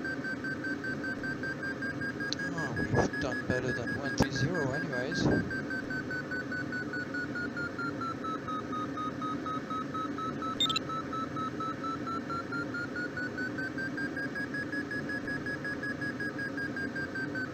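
A glider's variometer hums a steady tone that slowly dips and rises in pitch.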